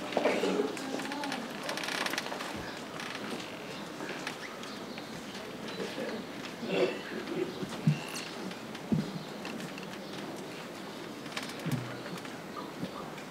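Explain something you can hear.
A man speaks calmly to a group, outdoors.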